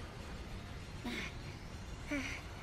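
A man pants and groans breathlessly.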